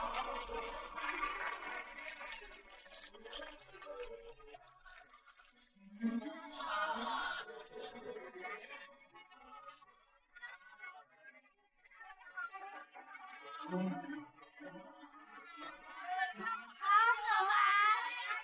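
A crowd of children and adults chatters in a large room.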